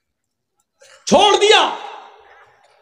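A man speaks loudly into a microphone over a loudspeaker, with a reverberant echo.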